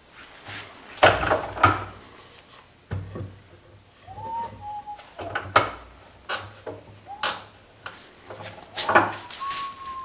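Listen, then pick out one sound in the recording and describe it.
Wood knocks against a workbench.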